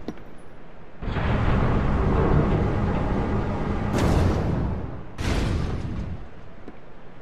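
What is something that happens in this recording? A heavy mechanism rumbles loudly as a platform moves.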